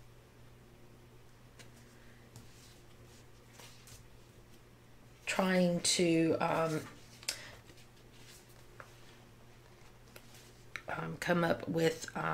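A sticker is peeled and pressed onto a paper page with soft rustling.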